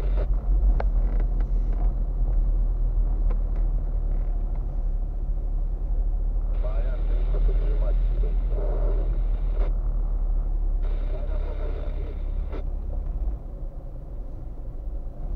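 Tyres rumble over a rough, bumpy road.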